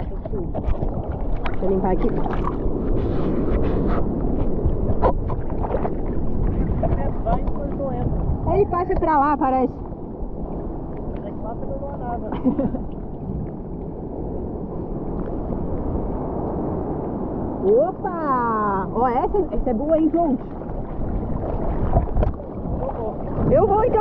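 Water laps and sloshes close by.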